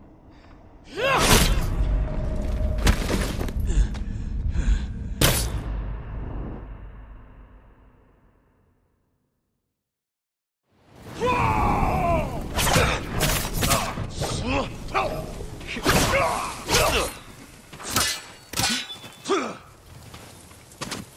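Swords clash and ring with sharp metallic strikes.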